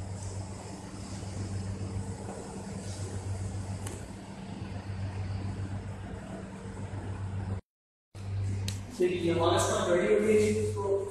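An oven hums steadily.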